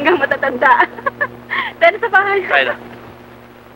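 A young woman laughs.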